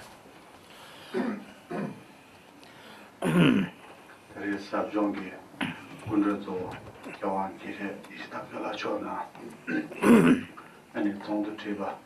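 A man speaks calmly into a microphone at a lectern.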